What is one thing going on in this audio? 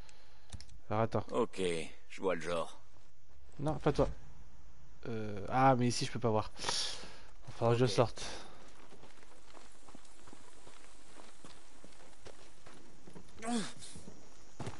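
A young man talks casually into a headset microphone, close up.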